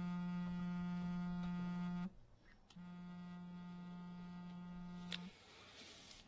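A phone rings with a steady electronic tone.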